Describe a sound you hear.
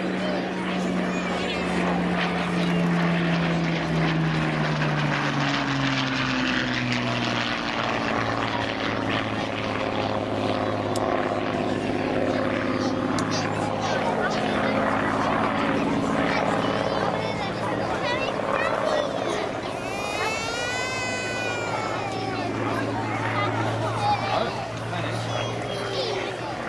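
A propeller plane's piston engine drones overhead, its pitch dropping as it passes.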